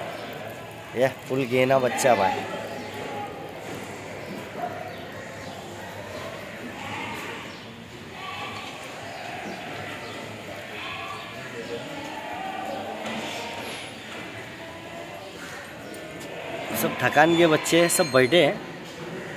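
Sheep bleat loudly close by.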